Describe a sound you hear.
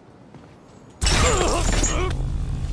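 A body slams onto a hard floor with a heavy thud.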